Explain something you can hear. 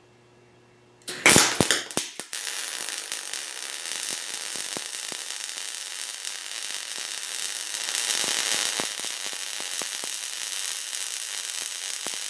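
A welding torch crackles and hisses steadily.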